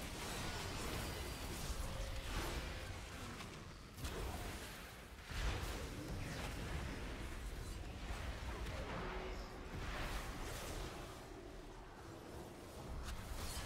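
Magic spells whoosh and crackle in rapid bursts.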